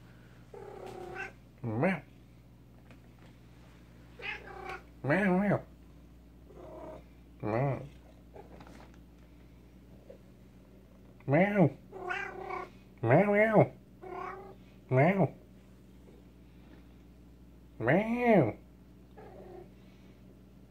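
A domestic cat meows loudly and insistently, again and again.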